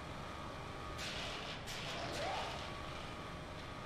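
A metal lift creaks and rumbles as it moves.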